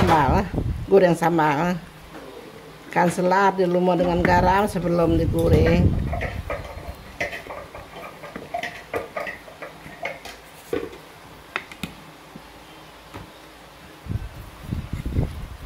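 Hands rub spice into raw fish.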